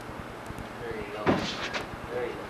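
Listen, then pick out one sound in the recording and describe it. A kick thuds against a padded shield.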